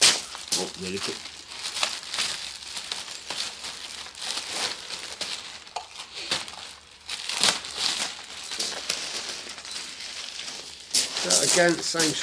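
Plastic wrapping crackles and rustles as it is handled.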